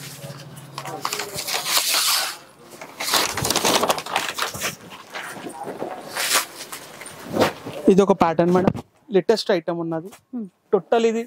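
Cloth rustles and swishes as fabric is lifted and spread out.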